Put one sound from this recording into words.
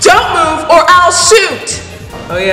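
A young woman shouts loudly.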